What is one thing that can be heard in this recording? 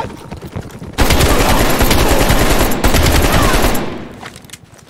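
A rifle fires rapidly at close range.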